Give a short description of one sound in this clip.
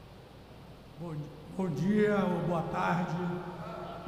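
A man speaks loudly and with emphasis through a microphone in a large echoing hall.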